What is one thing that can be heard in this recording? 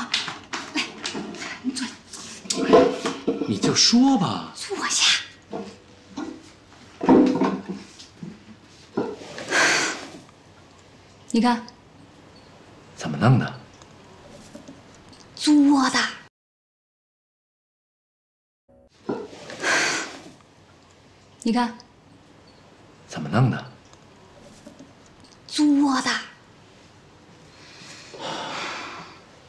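A woman speaks in a coaxing way, close by.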